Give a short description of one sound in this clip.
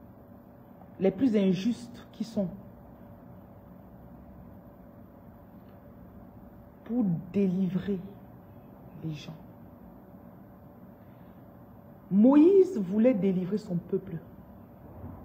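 A woman speaks calmly and close up, in short bursts with pauses.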